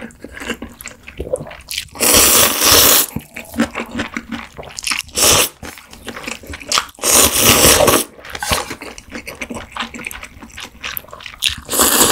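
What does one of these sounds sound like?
A woman chews wetly close to a microphone.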